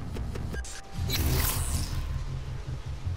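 A crackling energy blast whooshes and fizzles out.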